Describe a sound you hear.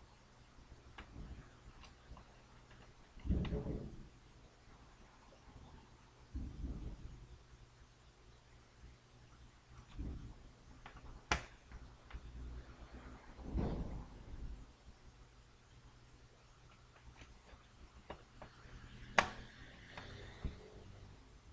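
A screwdriver clicks and scrapes against metal parts.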